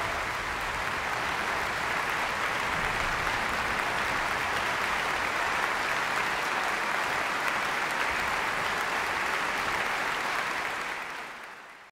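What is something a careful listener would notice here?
A large audience applauds loudly in an echoing hall, fading out at the end.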